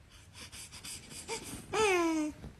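A baby laughs and squeals with delight up close.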